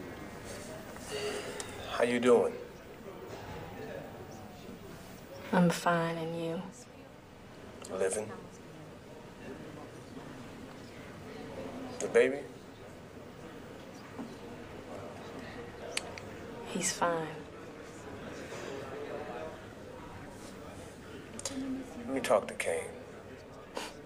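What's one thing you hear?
A man speaks quietly over a phone.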